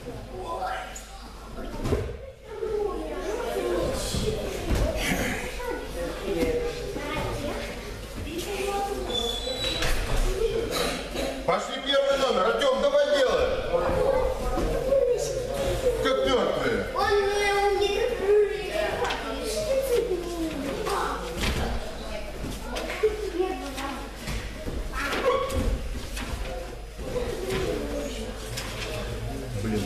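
Children talk and call out in an echoing hall.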